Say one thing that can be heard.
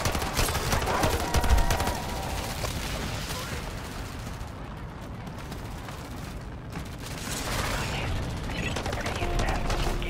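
Loud explosions boom.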